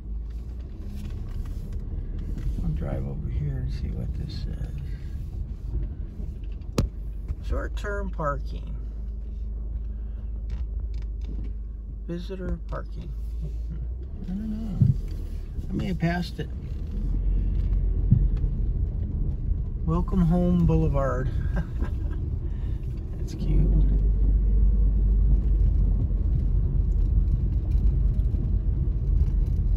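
A car engine hums low and steady while driving slowly.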